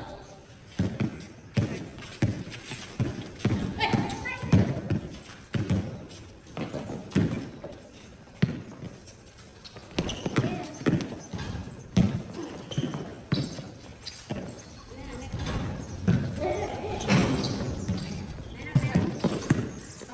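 A ball thumps on a hard court outdoors.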